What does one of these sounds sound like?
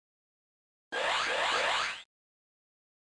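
A shimmering whoosh sounds as a shield rises.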